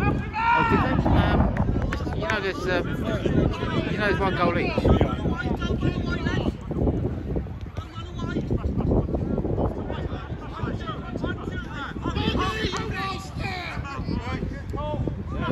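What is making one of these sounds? Older men shout and call to each other outdoors.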